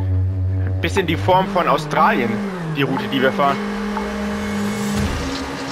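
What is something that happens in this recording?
A car engine revs up and down sharply.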